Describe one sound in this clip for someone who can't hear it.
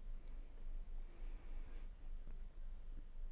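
A man breathes out heavily nearby.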